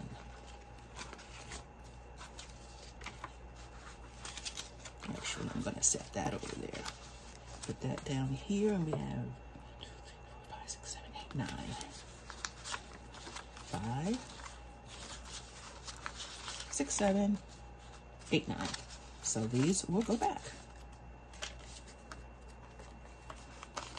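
Paper bills rustle and crinkle close by.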